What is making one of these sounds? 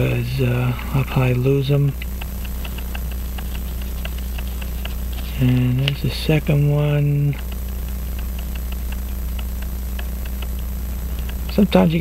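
A small metal tool clicks faintly against a watch movement.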